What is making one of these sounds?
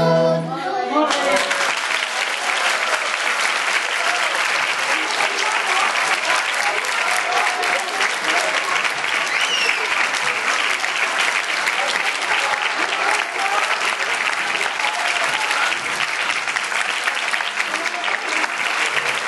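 Children cheer and chatter excitedly.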